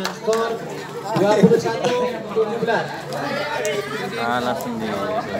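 Young men shout and chatter excitedly nearby, outdoors.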